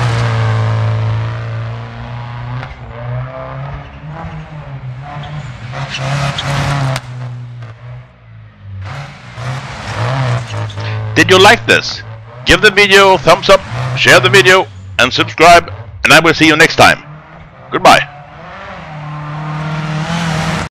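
A rally car engine roars at speed and revs up and down.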